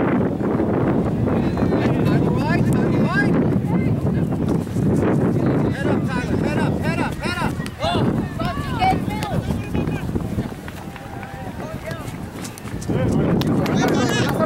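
Young players and spectators shout and call out across an open field.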